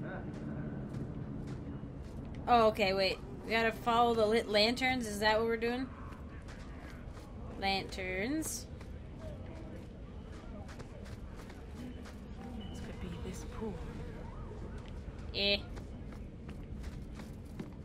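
Footsteps tread on a stone floor at a steady walking pace.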